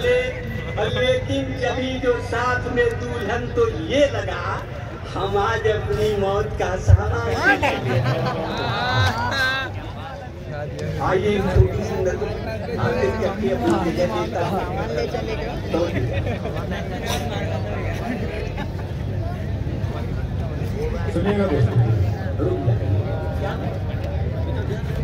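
A man speaks into a microphone over loudspeakers, echoing across a large outdoor crowd.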